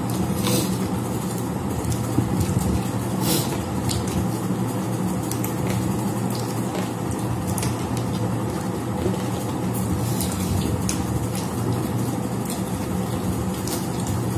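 A woman chews and slurps food close by.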